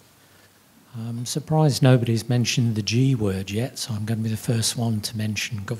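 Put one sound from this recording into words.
A man speaks calmly through a microphone in a large hall.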